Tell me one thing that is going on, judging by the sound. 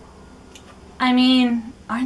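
A young woman squeals in excitement.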